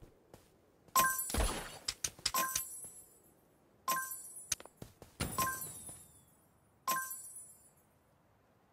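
Bright reward chimes ring out several times.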